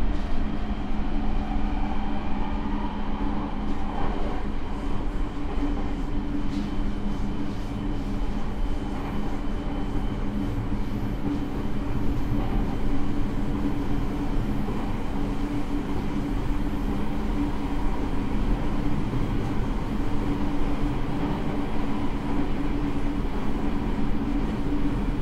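Train wheels rattle and clatter over the rails.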